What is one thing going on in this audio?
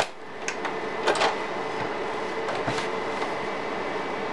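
A disc tray slides open with a whir.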